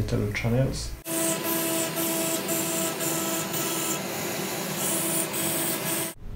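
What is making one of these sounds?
A milling machine spindle whines steadily as it cuts metal.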